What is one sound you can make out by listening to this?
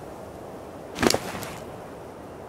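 A game menu opens with a short, sharp swoosh.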